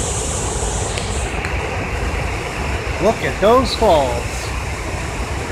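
Water roars over a dam spillway.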